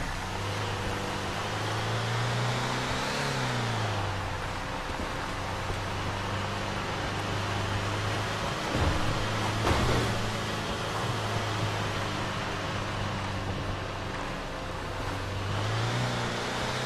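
A truck engine hums steadily, rising and falling in pitch.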